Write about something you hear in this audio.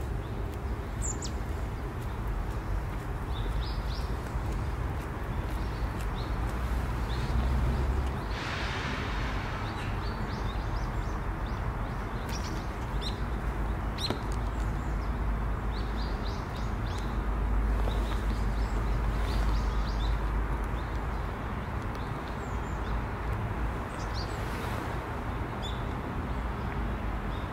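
A thrush gives soft, short chirps outdoors.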